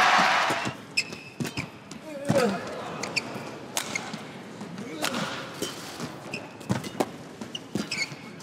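Rackets smack a shuttlecock back and forth.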